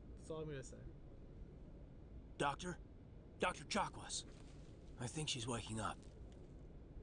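A man speaks briefly into a microphone, close up.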